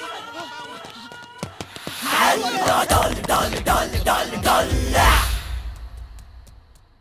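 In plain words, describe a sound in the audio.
Several young men shout loudly.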